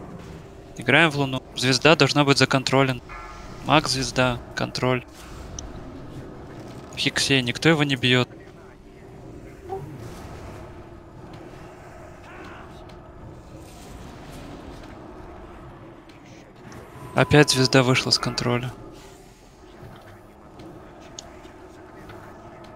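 Magic spells whoosh and crackle in a fantasy battle.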